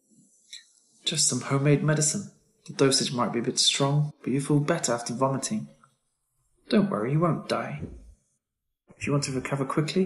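A man speaks calmly and reassuringly, close by.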